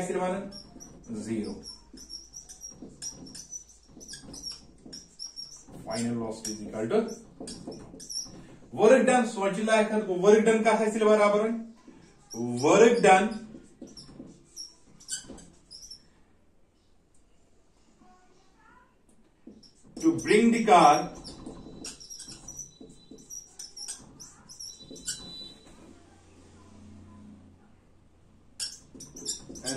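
A marker squeaks and taps on a whiteboard.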